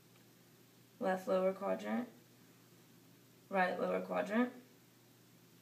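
A young woman speaks calmly nearby, in two short phrases.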